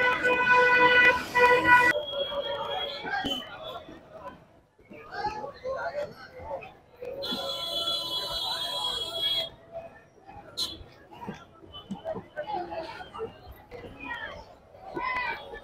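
A crowd of people chatters and calls out nearby, outdoors.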